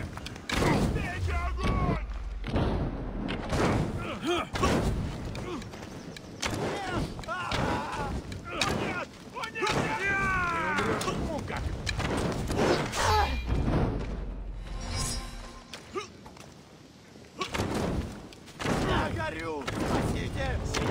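Swords clang against shields in a fight.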